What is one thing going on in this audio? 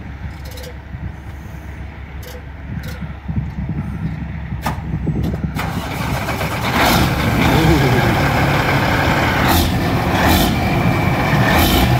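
A big truck's diesel engine rumbles at idle, then grows louder and rougher.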